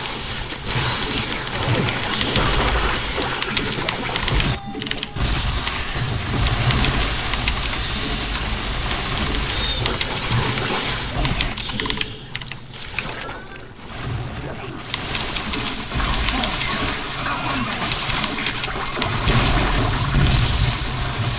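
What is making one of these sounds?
Laser weapons zap and crackle in a game battle.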